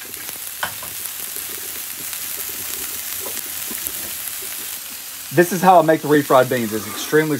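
Oil sizzles and bubbles steadily in a hot pan.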